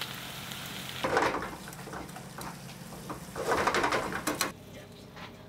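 Metal tongs scrape and clink against a pan.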